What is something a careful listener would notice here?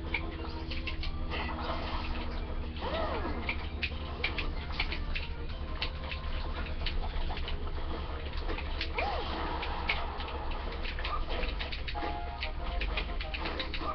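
Video game fight sounds thud and clash through a small speaker.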